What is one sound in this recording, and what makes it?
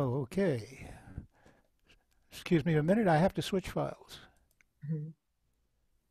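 An older man speaks calmly into a headset microphone, heard as if over an online call.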